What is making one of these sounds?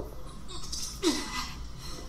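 A metal blade scrapes against stony ground.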